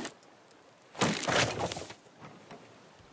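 A tree crashes down with a rustling burst.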